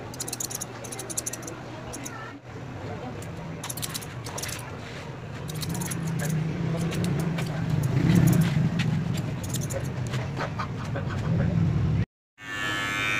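Scissors snip quickly through hair.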